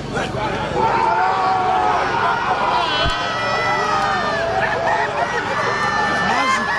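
A crowd of men cheers and shouts excitedly outdoors.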